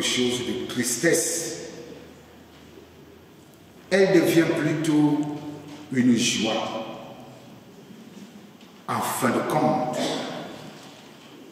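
A man speaks calmly into a microphone in an echoing room, pausing between phrases.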